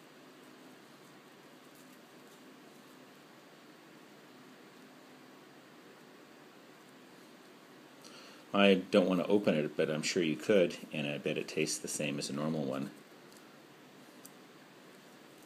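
An eggshell crackles softly as fingers peel it.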